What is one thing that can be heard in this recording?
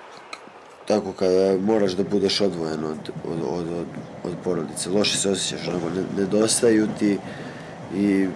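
A young man speaks calmly close to a microphone.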